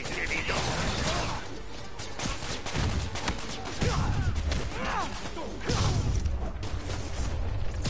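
Video game fighting thuds and crashes.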